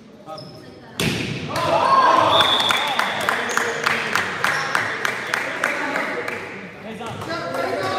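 A crowd of spectators cheers and claps in an echoing gym.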